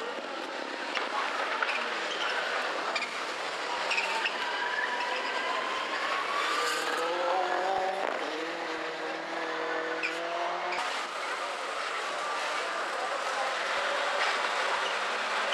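Rally car engines roar and rev loudly nearby.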